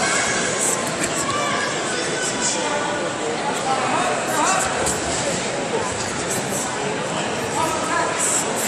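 Wrestlers' shoes squeak on a mat.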